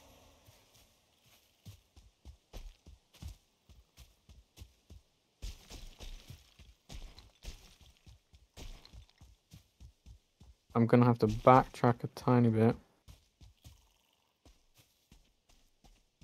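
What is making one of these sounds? Footsteps rustle steadily through undergrowth.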